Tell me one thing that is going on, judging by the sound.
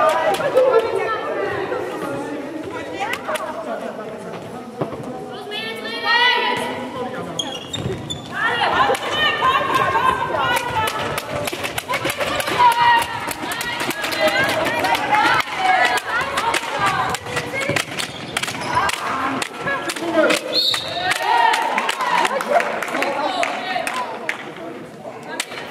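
Players' shoes squeak and thud on a hall floor.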